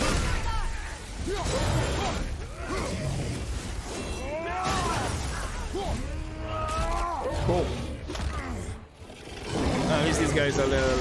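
A large beast roars and growls loudly.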